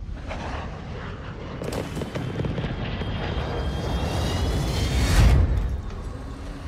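A large jet aircraft roars as it flies low overhead.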